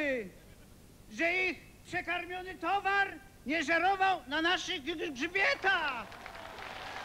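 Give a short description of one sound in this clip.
A middle-aged man speaks expressively into a microphone, heard over a loudspeaker system.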